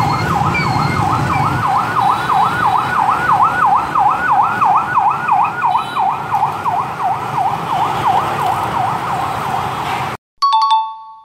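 Motorbike engines hum and buzz in busy traffic.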